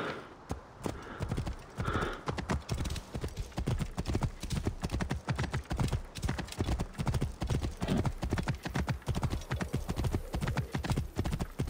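Horse hooves gallop on a dirt track.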